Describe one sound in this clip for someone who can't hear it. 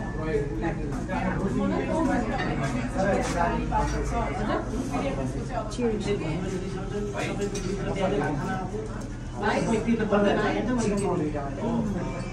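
A woman chews food with her mouth close to a microphone.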